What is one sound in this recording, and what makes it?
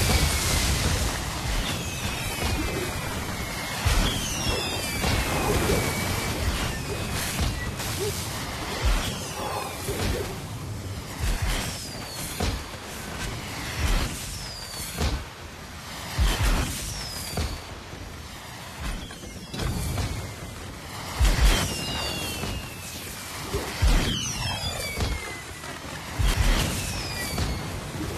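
Thuds and whooshing swings sound as a game character attacks.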